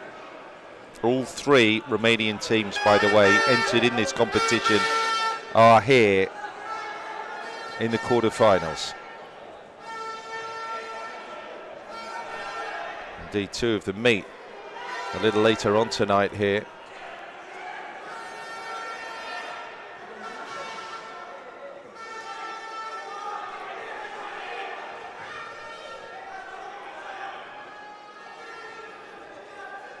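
A crowd murmurs and cheers in a large stadium.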